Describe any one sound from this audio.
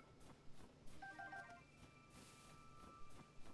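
A short bright chime plays.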